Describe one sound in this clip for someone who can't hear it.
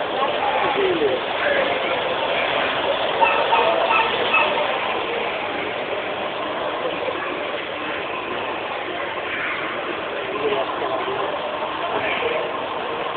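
Feet splash and wade through shallow floodwater.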